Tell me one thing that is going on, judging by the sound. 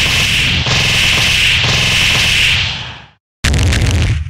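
A huge energy blast roars and crackles.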